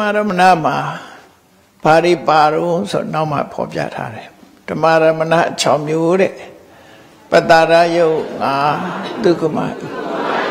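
An elderly man reads aloud in a slow, chanting voice through a microphone.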